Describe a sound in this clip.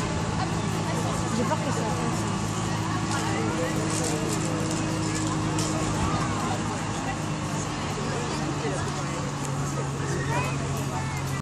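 A crowd of people chatters outdoors at a distance.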